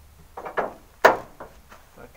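A hand knocks against a metal car bonnet.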